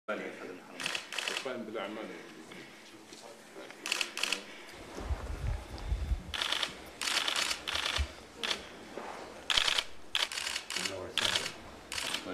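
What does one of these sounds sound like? Elderly men talk calmly with each other nearby.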